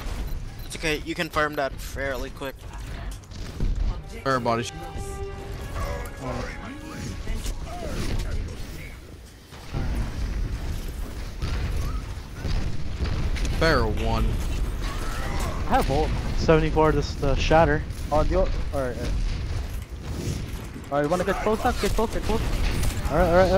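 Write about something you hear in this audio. Heavy weapons fire in rapid bursts.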